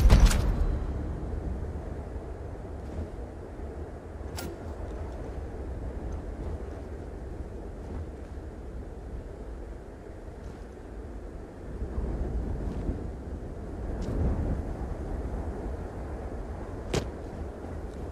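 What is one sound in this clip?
Heavy footsteps thud on a metal floor.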